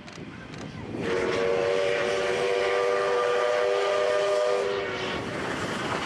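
A steam locomotive's whistle blows long and loud.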